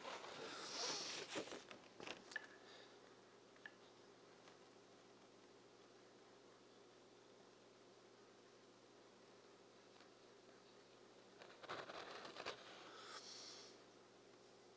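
Sheets of paper rustle and slide on a table.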